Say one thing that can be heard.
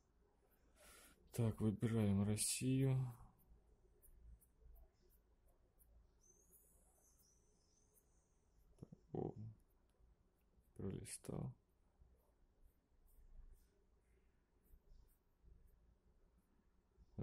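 A finger taps softly on a phone's touchscreen.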